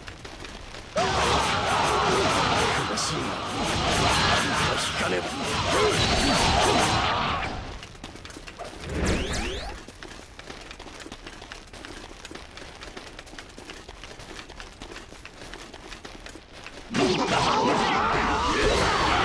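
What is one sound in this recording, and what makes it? Swords slash and whoosh in a loud, chaotic melee.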